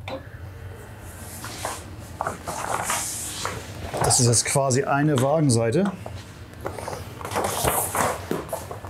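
A large sheet of paper rustles and crackles as it is handled.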